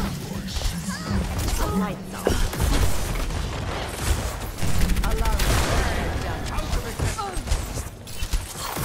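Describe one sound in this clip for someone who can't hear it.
Rapid energy gunfire crackles and thumps.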